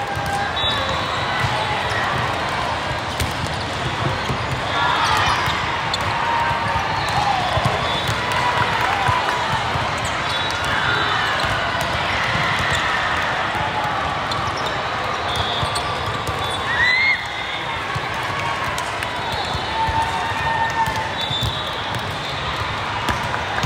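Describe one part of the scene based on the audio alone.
A crowd of voices echoes through a large hall.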